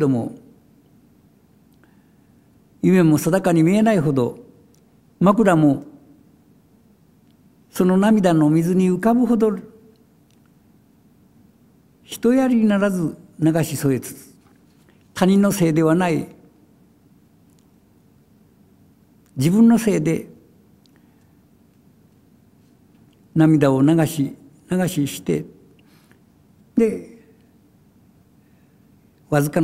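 An elderly man reads aloud slowly into a microphone, pausing between phrases.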